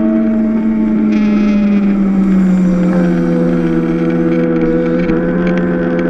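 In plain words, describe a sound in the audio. Other kart engines buzz nearby as they pass.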